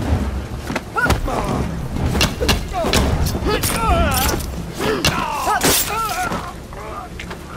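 Heavy punches thud in quick succession.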